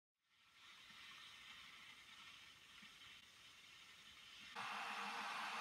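An electric kettle hisses softly as it heats.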